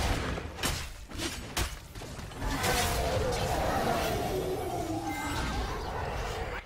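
Spells blast and weapons clash in a fast video game battle.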